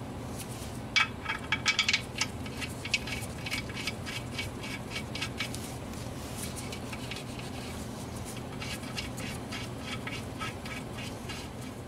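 Gloved hands tap and rub against a plastic cover.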